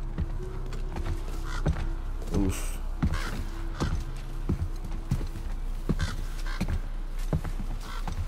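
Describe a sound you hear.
Heavy footsteps thud on wooden planks.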